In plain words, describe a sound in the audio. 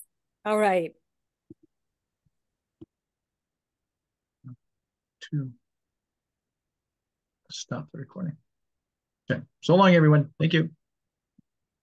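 A middle-aged man speaks calmly over an online call, with pauses.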